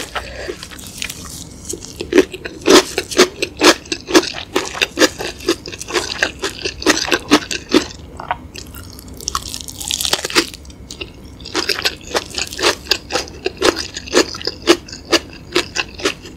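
A woman chews food wetly and crunchily close to a microphone.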